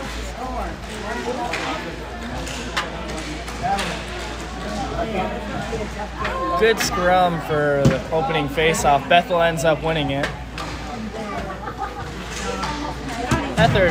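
Spectators talk and call out nearby in a large echoing hall.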